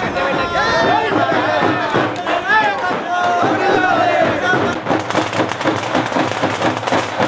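A crowd of men chatters and murmurs outdoors.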